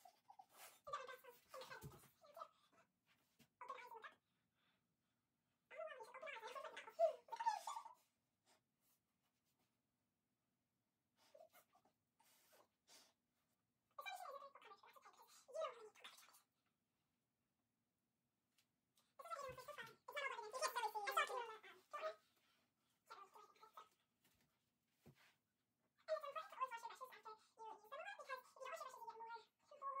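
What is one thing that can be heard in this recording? A young girl talks cheerfully close by, in short bursts with pauses.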